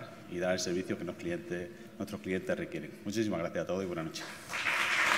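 A man speaks calmly into a microphone to an audience.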